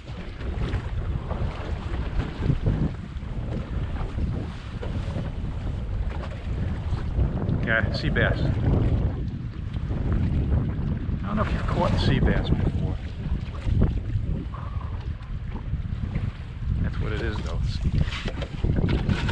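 Water laps against the side of a boat.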